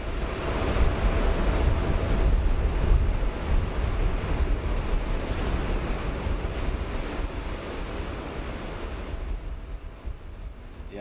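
Wind and heavy seas roar steadily outside a ship, then fade.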